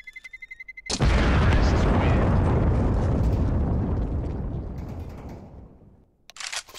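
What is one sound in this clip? A bomb explodes with a loud, long rumbling boom that slowly fades.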